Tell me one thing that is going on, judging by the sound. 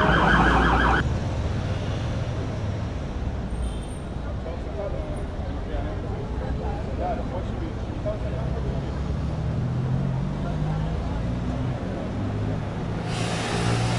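A bus engine idles close by with a low rumble.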